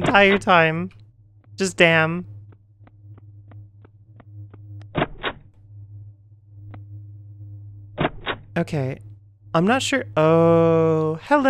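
A young woman speaks and exclaims with animation into a close microphone.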